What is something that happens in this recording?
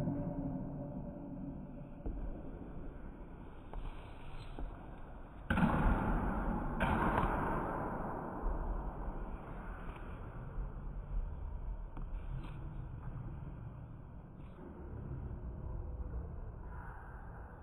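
Sneakers thud and shuffle on a wooden floor in an echoing hall.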